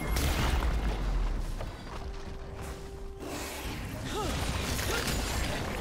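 Game spell effects crackle and whoosh during a fight.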